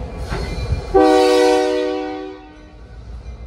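A locomotive horn blasts briefly.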